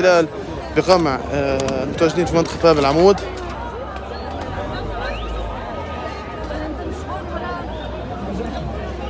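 A crowd murmurs and calls out in the background outdoors.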